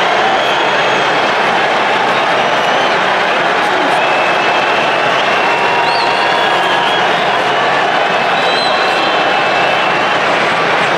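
A large stadium crowd roars and cheers loudly all around.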